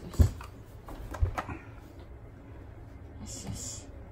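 A towel rubs against a puppy's fur.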